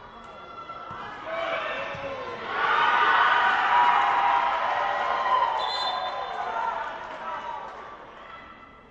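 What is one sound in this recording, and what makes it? Spectators cheer and shout from the side.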